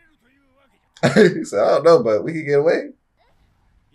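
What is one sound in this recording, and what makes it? A young man speaks loudly and with animation close to a microphone.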